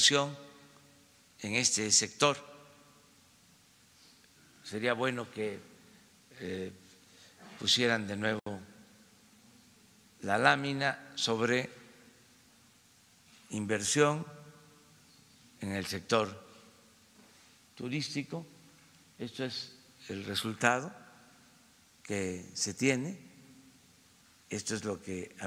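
An elderly man speaks slowly and calmly into a microphone, with pauses, in a large echoing hall.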